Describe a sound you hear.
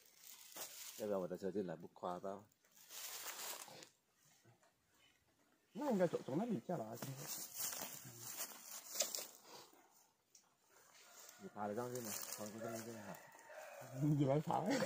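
A middle-aged man talks with animation nearby, outdoors.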